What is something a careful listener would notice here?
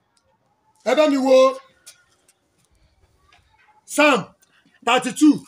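A man preaches loudly and with fervour into a microphone, in bursts with pauses.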